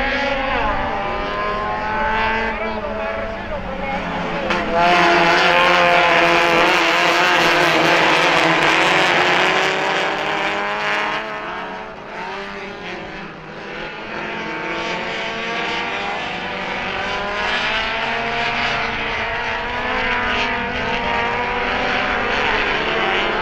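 Several racing car engines roar and rev as the cars race past outdoors.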